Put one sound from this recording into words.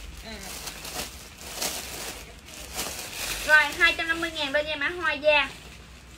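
Plastic wrapping rustles and crinkles as it is handled.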